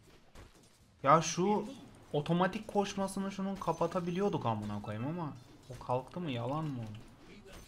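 A man speaks loudly and with animation into a microphone.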